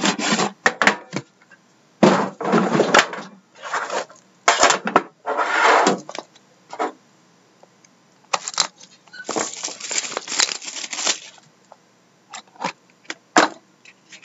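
Cardboard and tin boxes rustle, scrape and knock as they are handled.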